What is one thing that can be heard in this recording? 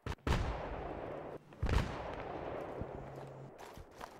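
A loud blast booms and echoes away.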